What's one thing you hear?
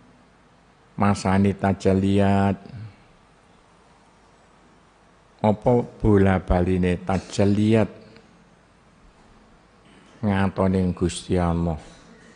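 An elderly man reads aloud in a melodic chanting voice through a microphone, with pauses between phrases.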